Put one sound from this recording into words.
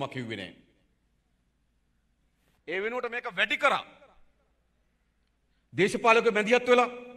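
A man speaks firmly into a microphone, in short bursts with pauses.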